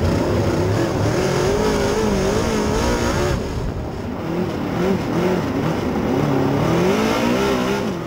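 A race car engine roars loudly up close, its pitch rising and falling as it revs.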